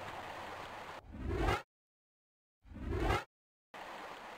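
A rising whoosh sounds as a menu spins open and shut.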